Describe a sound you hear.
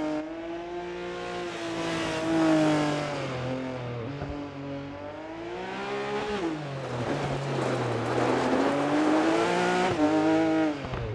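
A rally car engine revs hard and shifts through its gears.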